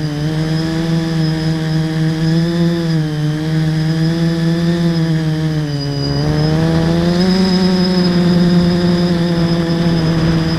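A small drone's motors hum with a steady whine that rises and dips in pitch as it flies.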